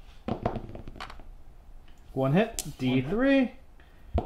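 Dice clatter on a table.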